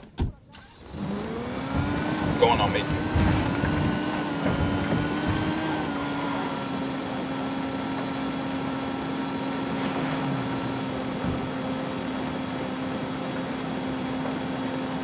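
A sports car engine hums steadily.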